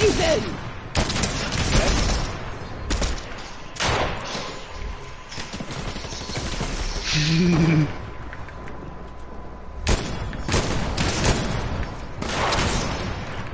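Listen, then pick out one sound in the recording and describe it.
Sniper rifle shots crack one at a time, with long gaps between them.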